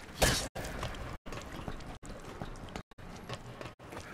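Footsteps clank on a metal grate.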